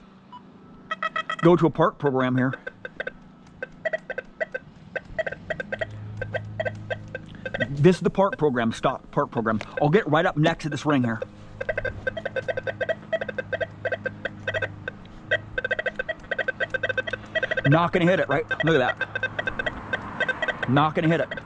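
A metal detector beeps in quick, rapid pulses.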